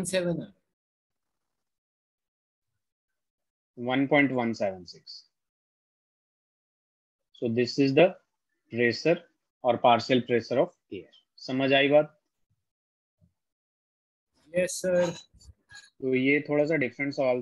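A man speaks calmly into a microphone, explaining at a steady pace with pauses.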